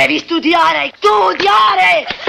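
A young boy answers, shouting.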